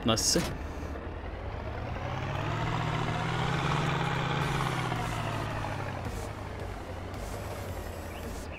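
A vehicle engine hums, rising and falling in pitch.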